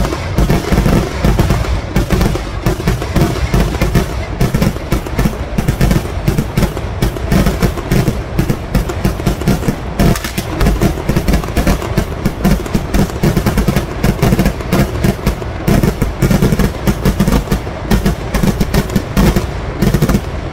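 Fireworks burst and crackle in rapid, booming bangs close by.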